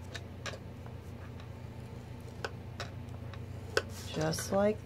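A small tool clicks lightly against paper.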